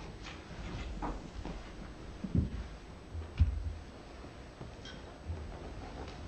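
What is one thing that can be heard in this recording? A woman speaks formally into a microphone in a large room.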